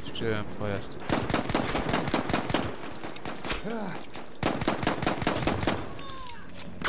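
A pistol fires a rapid series of shots.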